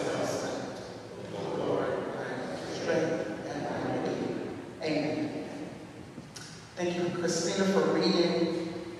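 A woman speaks with feeling through a microphone in a large echoing hall.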